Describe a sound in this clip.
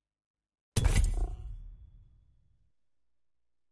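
A deep booming game menu sound hits and fades.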